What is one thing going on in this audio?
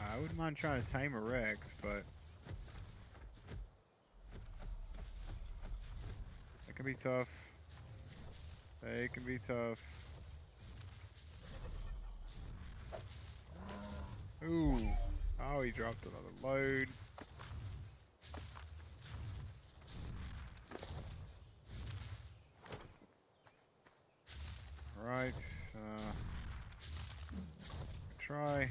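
A man talks casually into a close microphone, in bursts.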